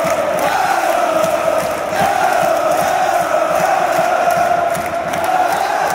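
Fans clap their hands close by.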